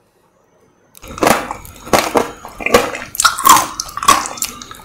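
A woman bites into crisp fruit with a sharp crunch.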